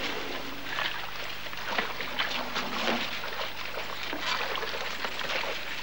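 An elephant splashes about in a shallow pool.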